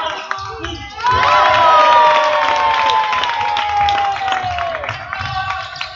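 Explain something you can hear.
A crowd cheers and claps in an echoing hall.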